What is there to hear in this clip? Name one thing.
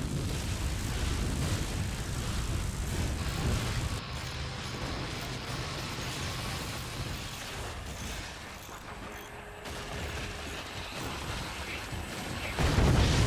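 Small explosions crackle and pop rapidly.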